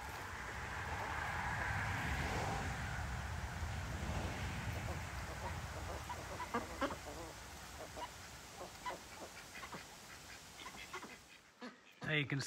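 A duck dabbles and slurps water from a bucket.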